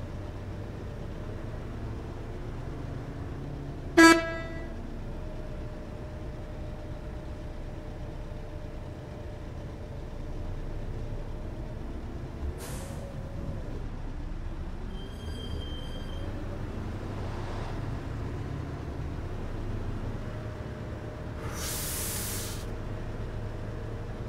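A bus engine hums steadily at low speed.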